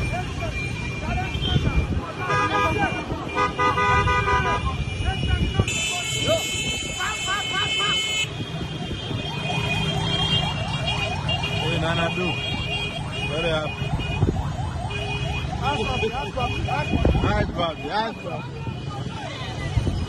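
Motorcycle engines hum and rumble in slow traffic.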